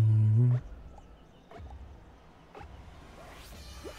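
A game countdown booms with deep beats, one after another.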